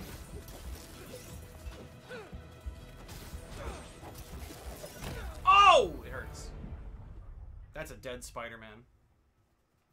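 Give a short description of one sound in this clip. Game combat sounds thud and crash.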